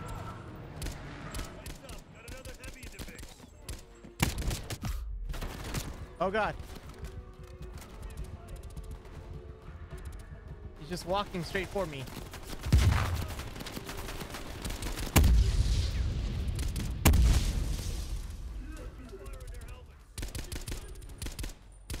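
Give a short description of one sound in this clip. Rapid rifle shots ring out in bursts.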